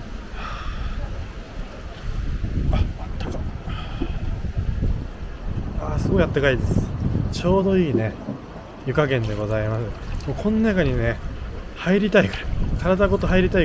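Water flows and gurgles along a channel.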